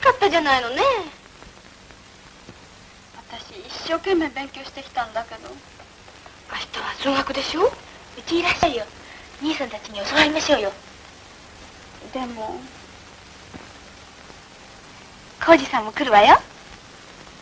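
Teenage girls talk quietly in turn, heard through a thin, slightly muffled old film recording.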